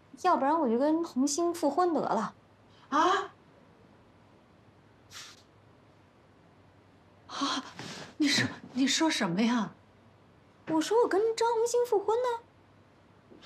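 A young woman speaks firmly and emphatically nearby.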